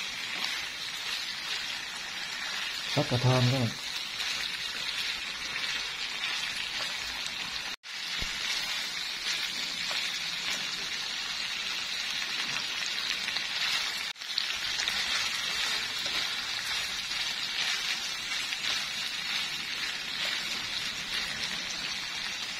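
Pork belly sizzles in a frying pan.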